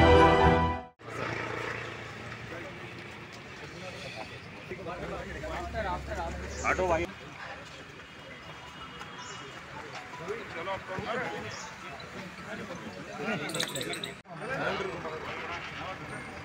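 Several men talk over each other in a crowd outdoors.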